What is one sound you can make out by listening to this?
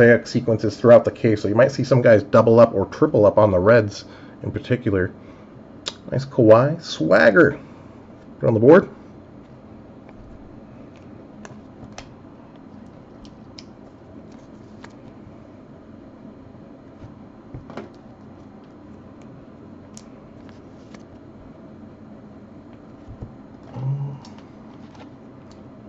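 Trading cards softly rustle and click as hands shuffle through them.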